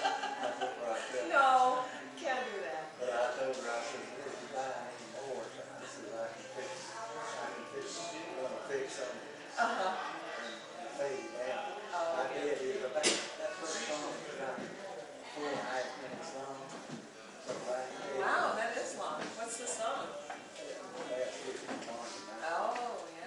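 Several elderly men talk calmly across a small room.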